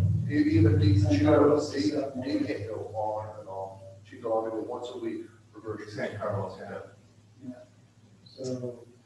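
A middle-aged man speaks calmly through a microphone in a large echoing room.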